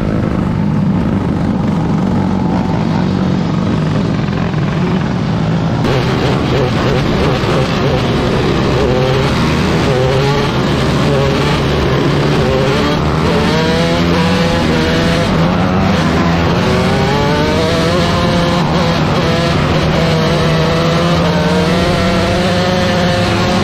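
A race car engine rumbles and roars up close.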